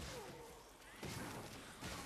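A fiery blast bursts with a loud whoosh.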